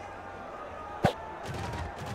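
A short sharp game sound effect pops as the ball is snapped.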